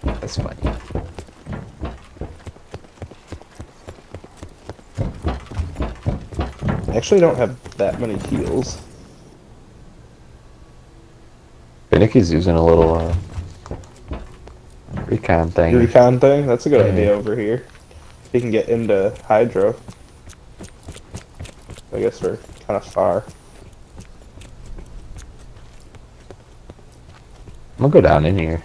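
Footsteps run on hard ground and metal grating.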